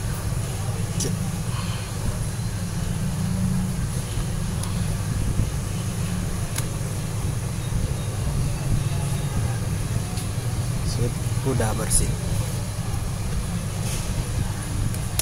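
Fingers click and tap on a plastic phone case.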